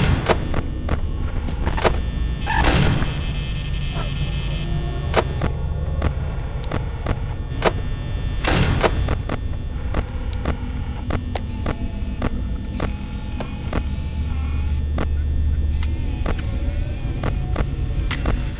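Electronic static crackles and hisses steadily.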